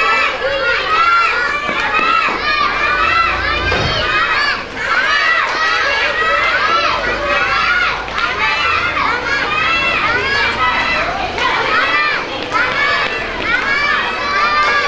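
A crowd of young children shouts and cheers excitedly in an echoing hall.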